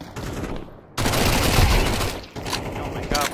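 A submachine gun fires a rapid burst of shots.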